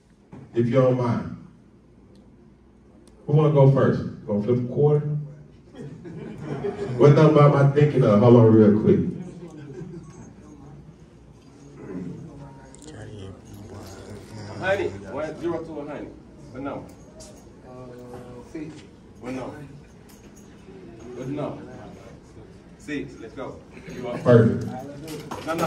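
A young man raps loudly into a microphone, heard through loudspeakers in a large room.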